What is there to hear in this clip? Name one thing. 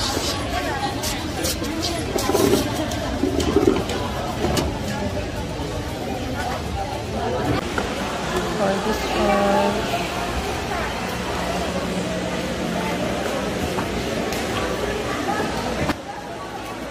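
A crowd of adults chatters around.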